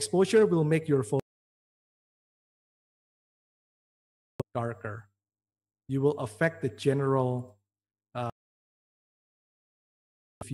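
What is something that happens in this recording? A man speaks calmly into a microphone, heard through an online call, with short pauses.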